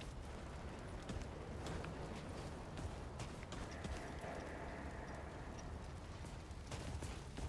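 Footsteps crunch quickly over gravel and debris.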